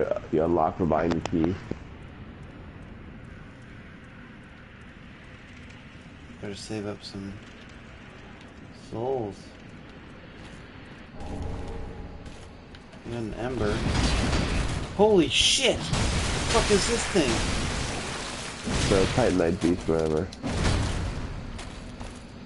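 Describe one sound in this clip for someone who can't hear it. A man talks and exclaims loudly into a microphone.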